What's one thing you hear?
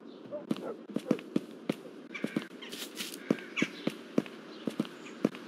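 Footsteps tap quickly on stone paving.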